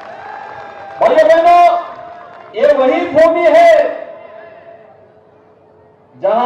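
A man speaks forcefully into a microphone over a loudspeaker.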